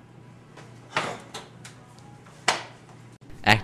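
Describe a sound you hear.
A hand slaps against another hand.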